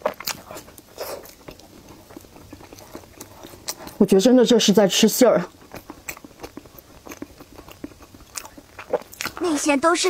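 A young woman chews and crunches crispy food close to a microphone.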